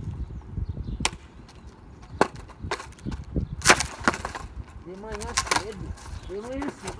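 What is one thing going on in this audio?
A skateboard knocks and clatters on concrete.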